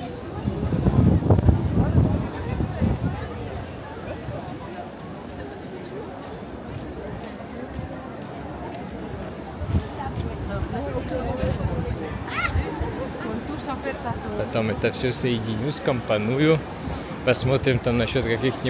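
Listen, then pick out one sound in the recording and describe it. A crowd of people murmurs and chats outdoors.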